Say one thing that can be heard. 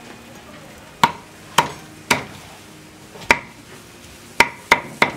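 A cleaver chops sharply on a wooden block.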